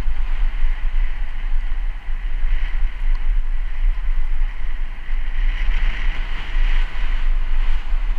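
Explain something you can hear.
A car drives past on a wet road.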